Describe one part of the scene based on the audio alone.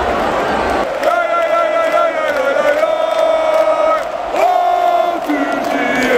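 A large crowd sings a chant together, echoing across the stadium.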